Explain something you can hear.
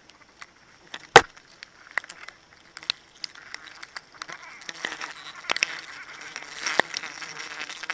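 A wooden climbing peg knocks against a tree trunk.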